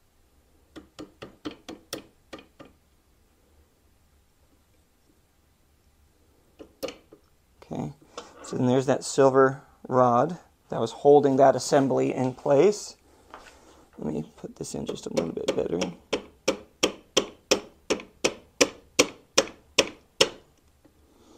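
Small metal parts click sharply in quick succession.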